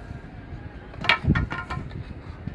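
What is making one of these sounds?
A wooden board thumps down onto a wooden table.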